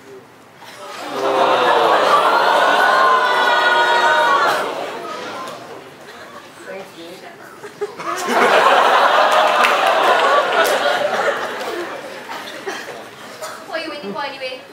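Young actors speak lines loudly in a large echoing hall.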